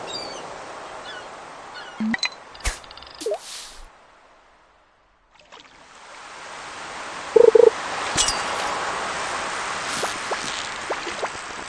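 Water laps softly and steadily.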